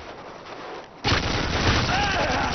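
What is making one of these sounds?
A gun fires loud bursts of rapid shots.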